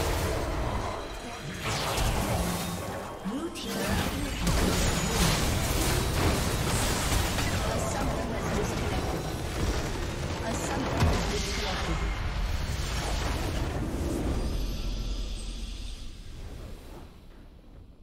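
Video game spell effects crackle, zap and whoosh in a busy fight.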